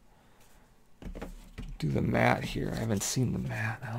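A cardboard box scrapes across a wooden table.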